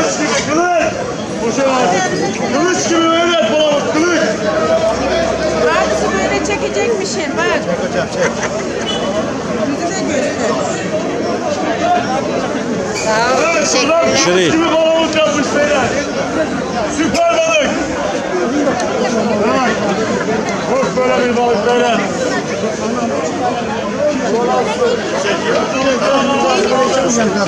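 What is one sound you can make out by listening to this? A busy crowd of men and women chatters all around outdoors.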